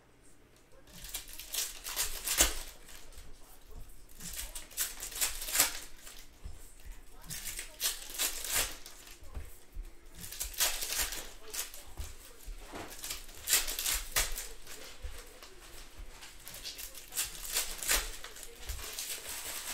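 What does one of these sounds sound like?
Foil card packs crinkle and tear as they are ripped open.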